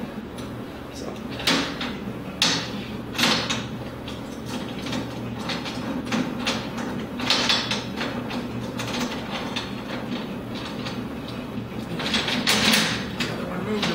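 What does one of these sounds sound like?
A screwdriver clicks as it turns a screw.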